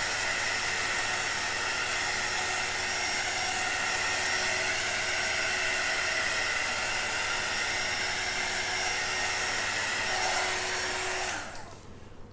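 A handheld torch hisses steadily, then cuts off.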